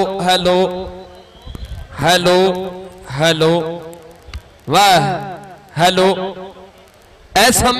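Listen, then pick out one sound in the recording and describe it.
A man shouts loudly in short bursts, with a slight echo.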